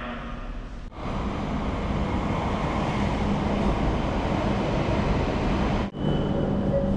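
A high-speed train rushes into a station with a loud, rising roar.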